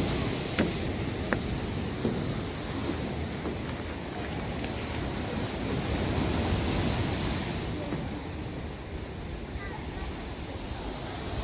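Wind buffets the microphone outdoors with a low, steady rumble.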